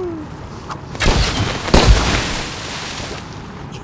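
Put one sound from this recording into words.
A blast booms loudly.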